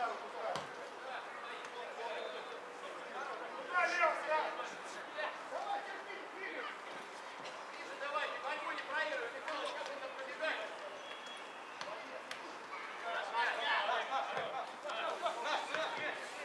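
Young men shout to each other across an open outdoor field.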